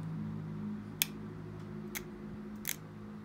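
Small stone flakes snap off sharply under a pressing tool.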